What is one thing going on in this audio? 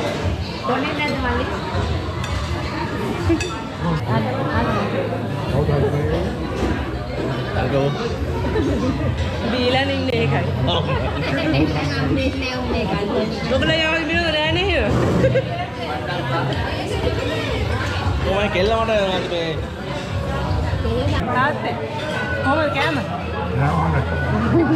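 A young woman talks and laughs with animation close by.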